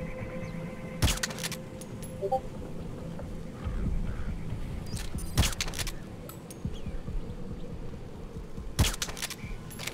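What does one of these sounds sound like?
A pistol fires single shots.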